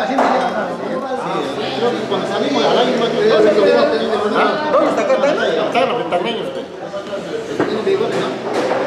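Several men talk and chatter nearby.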